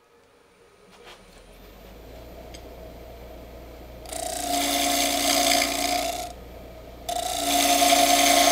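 A wood lathe hums as it spins.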